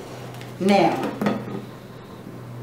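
A middle-aged woman speaks briefly and calmly.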